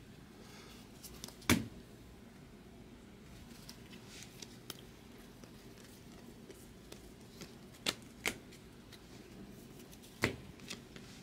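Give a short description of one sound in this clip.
Trading cards shuffle and slide against each other in someone's hands.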